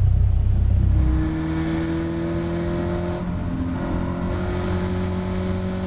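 A race car engine roars at speed, its pitch climbing steadily.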